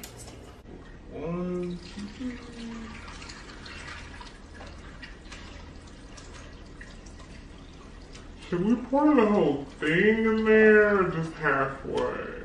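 Soda pours and fizzes over ice.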